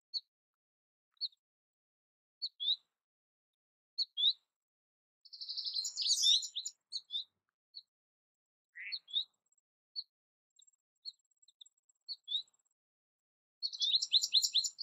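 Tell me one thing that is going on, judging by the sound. A small songbird chirps and twitters close by.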